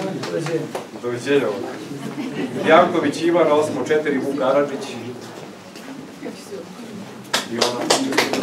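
A man speaks with animation to a small group nearby.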